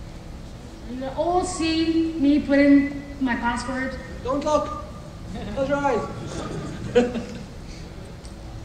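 A man speaks loudly at a distance, his voice echoing in a large hall.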